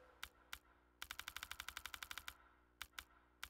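Menu selections tick in quick succession.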